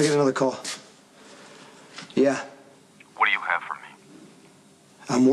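A man speaks in short, tense bursts into a phone, close by.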